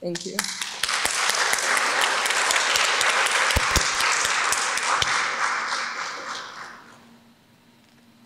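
An audience applauds in a large hall and the applause fades away.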